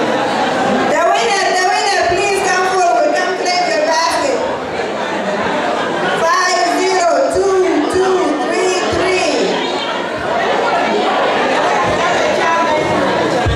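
A woman speaks with animation through a microphone over loudspeakers.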